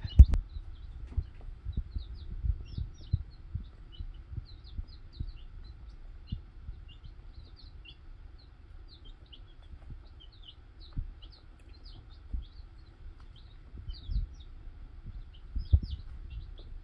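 Chicks peep in high, rapid chirps.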